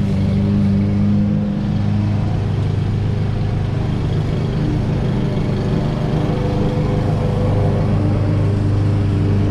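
A petrol lawn mower engine drones steadily nearby.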